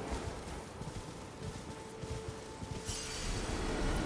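Horse hooves gallop over grass.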